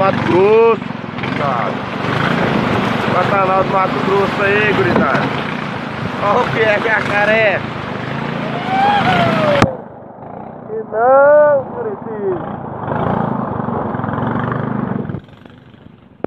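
Muddy floodwater rushes and churns loudly.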